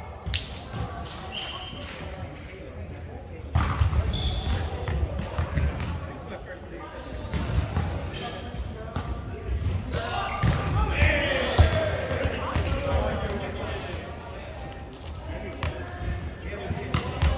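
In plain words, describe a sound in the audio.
A volleyball is struck with sharp smacks that echo in a large hall.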